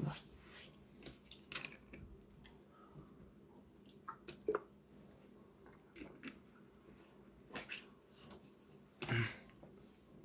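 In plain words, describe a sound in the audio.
A plastic bottle crinkles and clicks in hands.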